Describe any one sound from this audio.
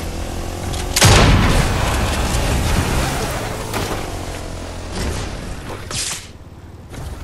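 A quad bike engine drones steadily, then cuts out.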